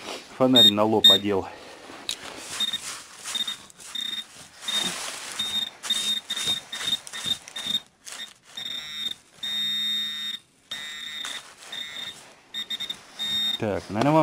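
Dry leaves and twigs rustle and crackle as a tool pokes through them.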